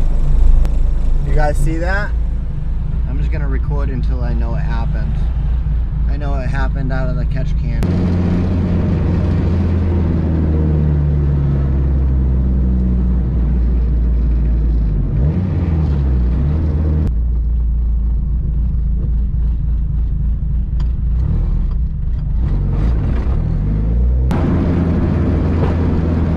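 A car engine hums and revs steadily while driving.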